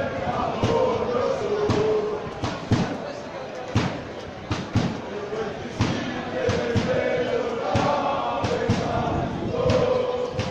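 Fans clap in a steady rhythm.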